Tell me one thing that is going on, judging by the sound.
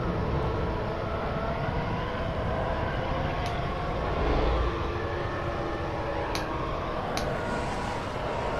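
A spacecraft engine roars and whines steadily.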